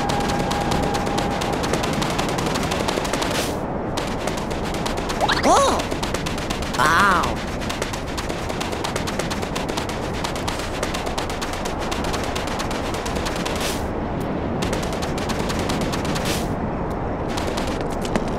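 Wind roars steadily in a sandstorm.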